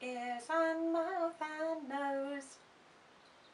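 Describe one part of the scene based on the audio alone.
A woman sings in a high, playful voice close by.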